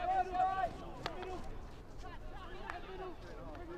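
A hockey stick strikes a ball with a sharp crack.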